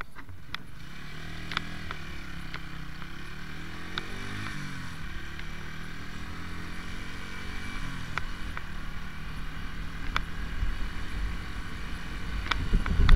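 A motorcycle engine hums steadily, rising and falling in pitch as it rides along a road.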